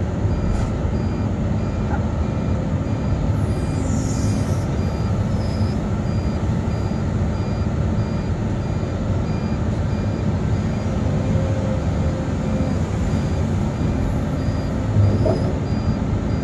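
A grapple clanks against metal pipes.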